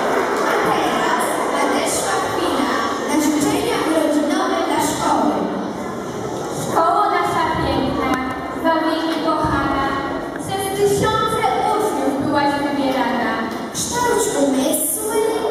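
A group of young children sings together.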